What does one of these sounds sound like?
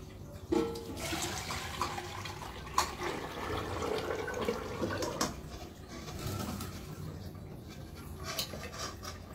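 Liquid pours from a metal bowl into a metal pot.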